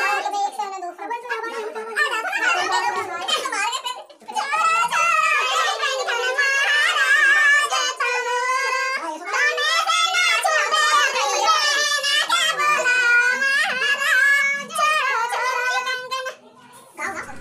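Several women sing together close by.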